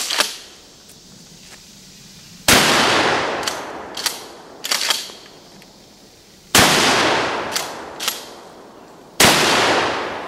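A heavy gun fires loud booming shots outdoors, echoing off the trees.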